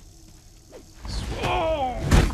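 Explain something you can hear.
A man shouts loudly and gruffly up close.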